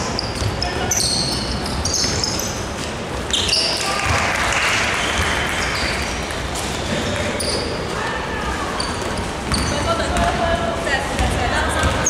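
Young women players call out to each other.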